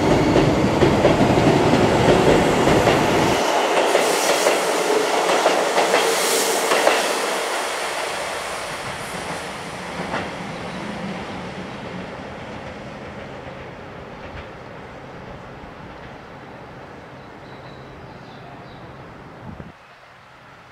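A train rumbles loudly along the tracks and slowly fades into the distance.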